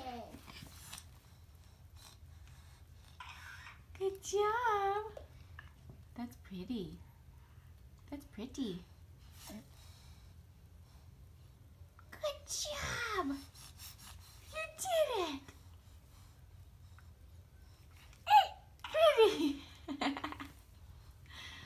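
A baby babbles and coos close by.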